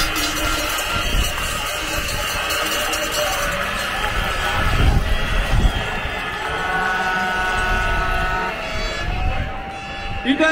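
A large crowd chants and shouts outdoors.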